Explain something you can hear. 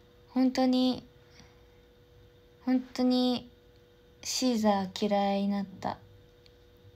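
A young woman speaks close to a microphone in short, calm phrases.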